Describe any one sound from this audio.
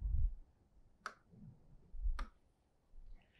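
A pen taps and squeaks on a board.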